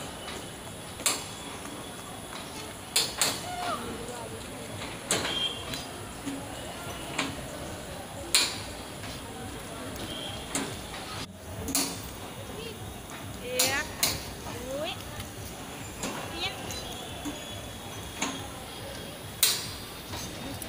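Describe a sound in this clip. Train wheels clack loudly over rail joints.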